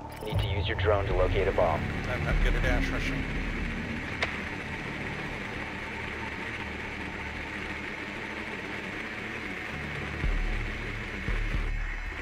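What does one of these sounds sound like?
A small remote-controlled drone whirs steadily as it rolls along a hard floor.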